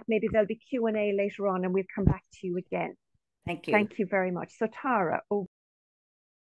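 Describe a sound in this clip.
An elderly woman speaks warmly over an online call.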